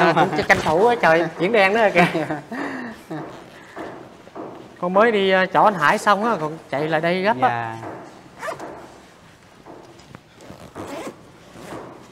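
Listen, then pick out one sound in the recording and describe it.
A bag and clothing rustle close by.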